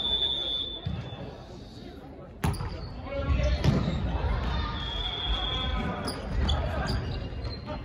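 Young men and women call out and shout to each other in a large echoing hall.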